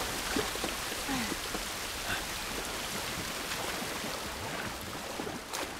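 A young man speaks quietly into a headset microphone.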